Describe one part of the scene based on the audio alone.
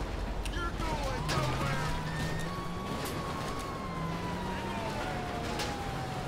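A police siren wails and rises and falls.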